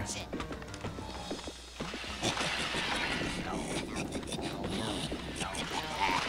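Eerie video game music plays.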